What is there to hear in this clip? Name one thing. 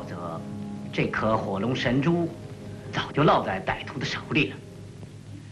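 A young man speaks earnestly.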